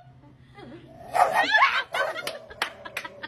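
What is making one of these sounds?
A small dog barks sharply.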